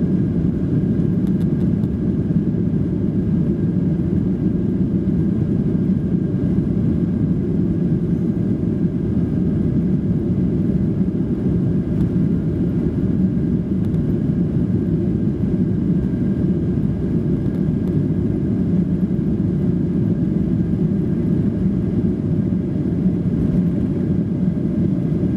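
Wheels rumble along a runway.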